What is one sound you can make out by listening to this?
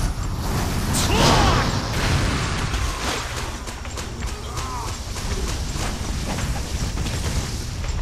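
An explosion roars with a burst of fire.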